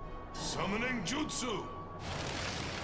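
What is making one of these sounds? A man shouts forcefully, heard up close.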